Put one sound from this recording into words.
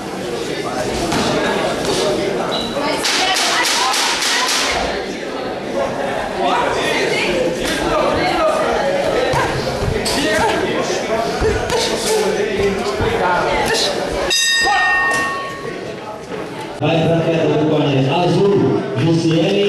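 Boxing gloves thud as punches land.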